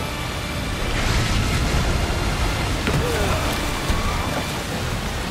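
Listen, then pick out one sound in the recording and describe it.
A large splash bursts up from the water.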